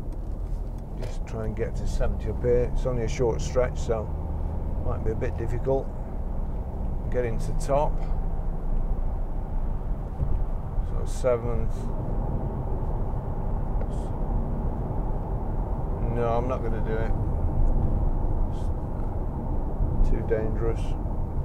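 A middle-aged man talks calmly and close by, over the road noise.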